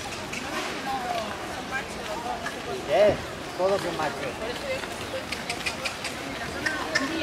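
Children chatter and call out nearby outdoors.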